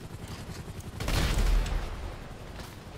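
A helicopter crashes with a loud, booming explosion.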